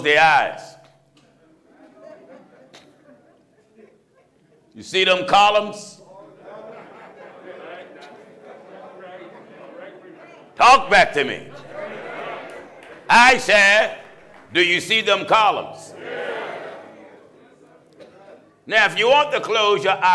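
A middle-aged man preaches forcefully through a microphone in loud, shouted bursts.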